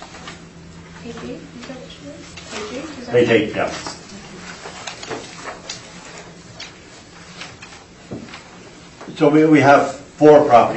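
Adults speak in turn, heard from a distance through a room microphone.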